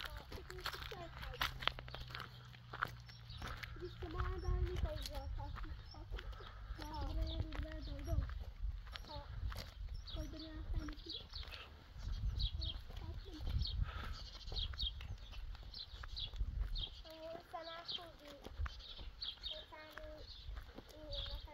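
Footsteps scuff on an asphalt road.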